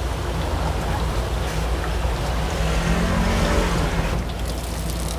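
Hot oil sizzles and bubbles steadily.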